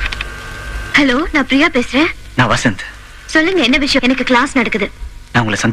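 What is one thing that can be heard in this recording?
A young woman speaks calmly into a phone.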